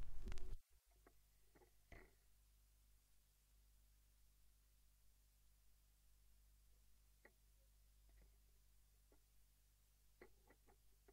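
Hands knock and rub softly on a vinyl record on a turntable.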